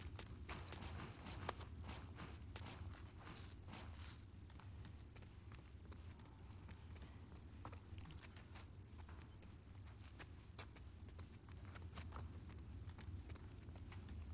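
Footsteps creak softly on a wooden floor.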